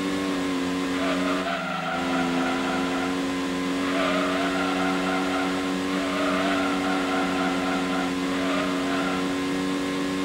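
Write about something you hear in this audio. Tyres squeal briefly through the bends.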